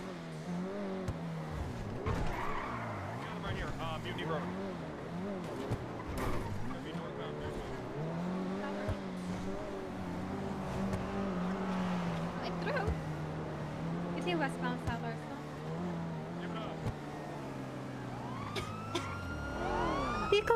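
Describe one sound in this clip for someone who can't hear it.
A sports car engine hums and revs as the car drives.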